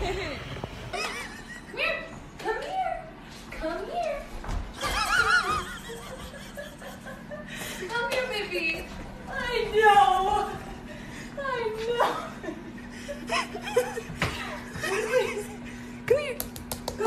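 A woman talks in a high, coaxing voice.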